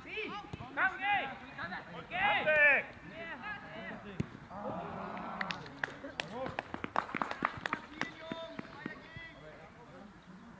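Young men shout to each other across an open field, some distance away.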